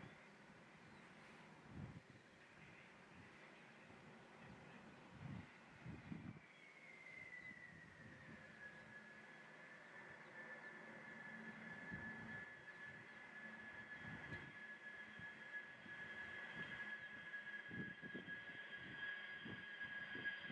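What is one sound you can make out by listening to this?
Jet engines whine steadily as an aircraft taxis toward the listener, growing louder.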